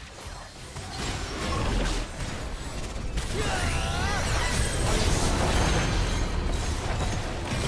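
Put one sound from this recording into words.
Magic blasts and impacts boom in quick succession.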